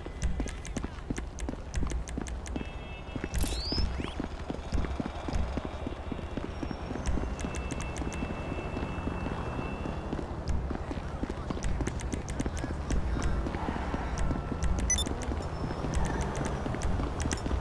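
Menu selections tick and click in quick succession.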